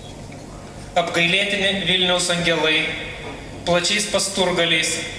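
A middle-aged man reads aloud expressively into a microphone, heard through loudspeakers in an echoing room.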